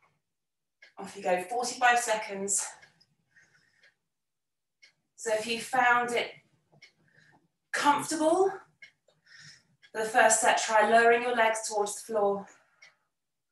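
A woman speaks calmly and clearly into a close microphone, giving instructions in short bursts.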